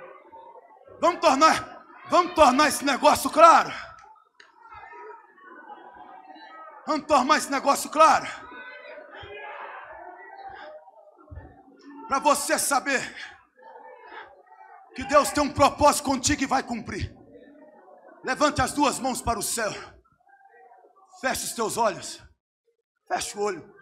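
A man preaches loudly into a microphone in bursts of shouting, heard through loudspeakers in an echoing hall.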